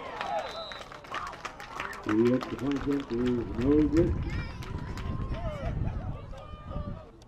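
Young players clap their hands in unison.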